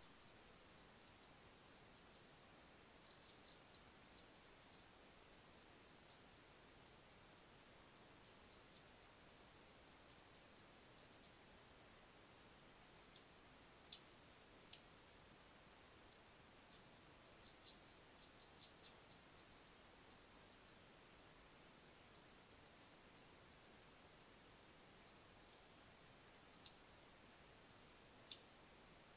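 A hedgehog munches and crunches food close by, with small clicks against a dish.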